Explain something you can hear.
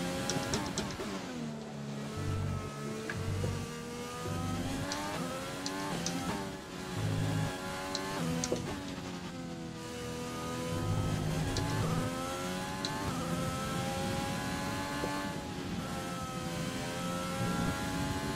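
A racing car engine whines loudly, rising in pitch and dropping sharply as it shifts gears.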